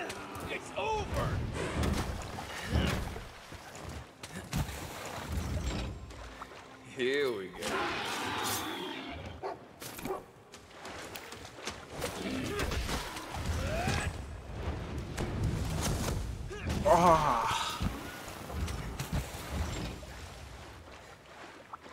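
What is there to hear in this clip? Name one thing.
Heavy blade strikes hit a creature again and again.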